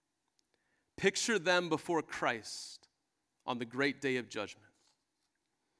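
A man speaks calmly into a microphone, reading out.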